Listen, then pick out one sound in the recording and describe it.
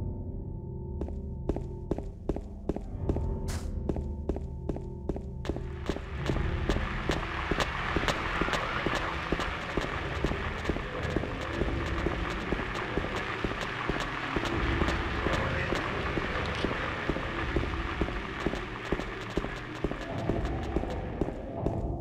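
Quick footsteps run steadily on pavement.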